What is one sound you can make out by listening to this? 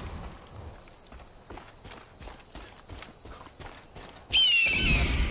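Footsteps rustle steadily through dry grass.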